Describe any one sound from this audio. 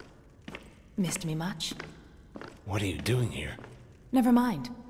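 A man speaks firmly in a deep voice, close by.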